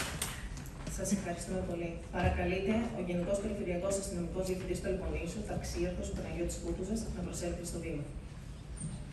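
An older man speaks calmly through a microphone in an echoing hall.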